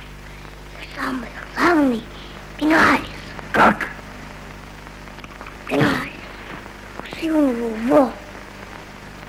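A boy speaks in a high voice.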